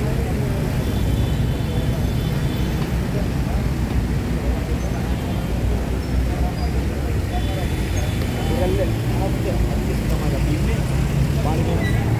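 Men talk in a crowd nearby, outdoors.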